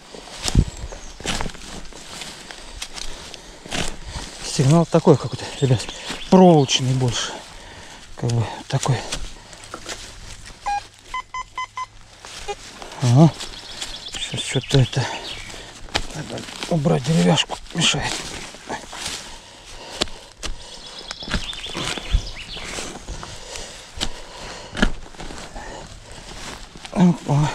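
A small shovel scrapes and chops into soil.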